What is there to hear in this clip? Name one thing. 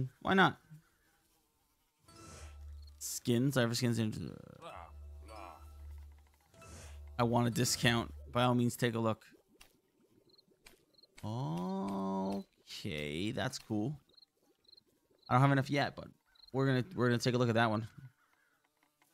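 A man talks with animation into a headset microphone, close by.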